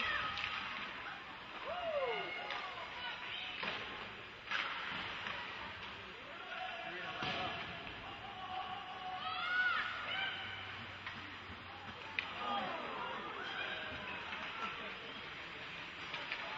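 Skates scrape and hiss across ice in a large echoing rink.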